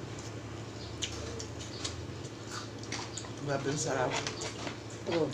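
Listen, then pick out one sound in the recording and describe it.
Fingers rustle and crunch through crumbly food.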